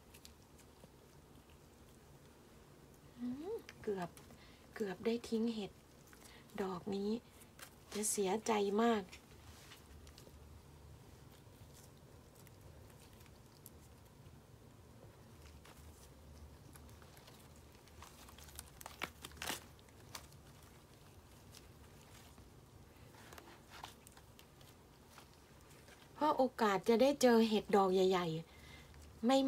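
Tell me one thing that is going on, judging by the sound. Dry mushrooms rustle and crackle as hands pull them apart.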